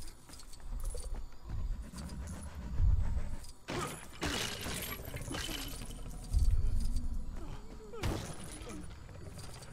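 Plastic bricks clatter and scatter as objects smash apart.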